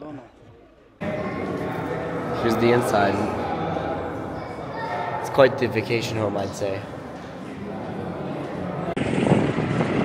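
Voices murmur and echo in an indoor hall.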